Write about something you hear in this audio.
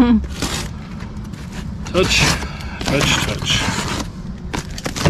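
A blade slices through packing tape on a cardboard box.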